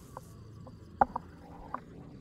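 A metal mortar is set down on the ground with a sharp clank.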